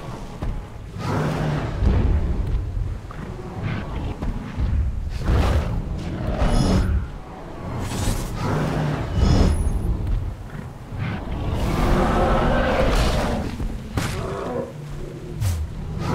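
A dinosaur roars and growls.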